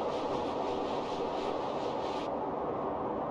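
Paws crunch quickly through snow.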